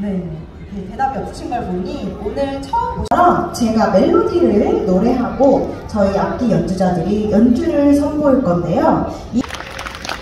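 A young woman sings through loudspeakers outdoors.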